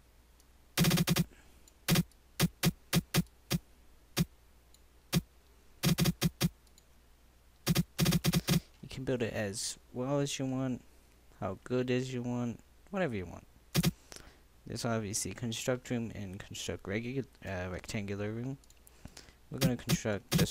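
Short sharp interface clicks tick in quick bursts.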